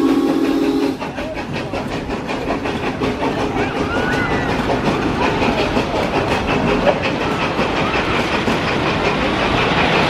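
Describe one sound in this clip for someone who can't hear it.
A roller coaster chain clatters rapidly as a train climbs the lift hill.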